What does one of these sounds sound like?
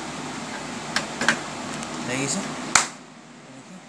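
A plastic cable plug clicks as it is pushed into a socket.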